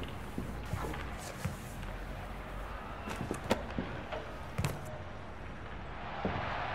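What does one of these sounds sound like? Books knock and slide against wooden shelves.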